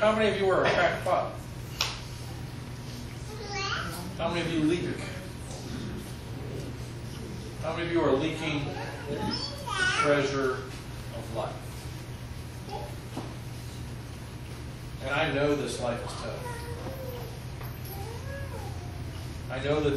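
A middle-aged man speaks to an audience, pausing between phrases.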